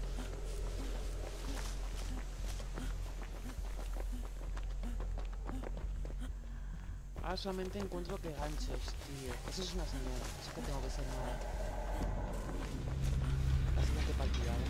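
Tall plants rustle as someone pushes through them.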